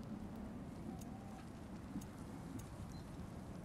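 Soft menu clicks tick as a selection moves.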